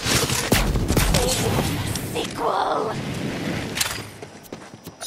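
A loud fiery explosion crackles and roars.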